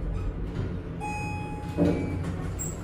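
An elevator chime dings.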